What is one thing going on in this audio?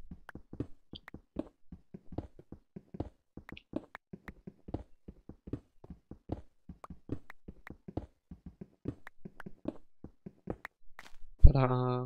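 A pickaxe chips at stone in short, quick knocks.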